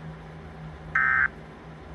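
An emergency alert tone beeps briefly from a television speaker.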